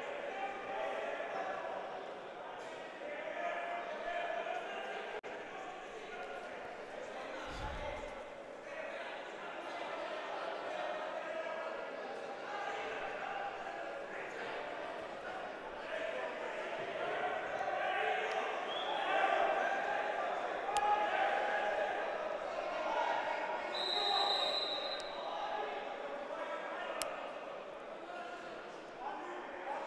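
Men talk and call out in a large echoing indoor hall.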